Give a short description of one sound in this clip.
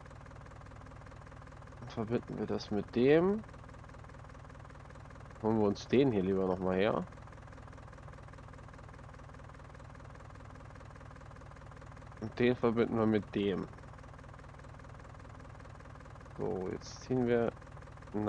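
A tractor engine idles steadily.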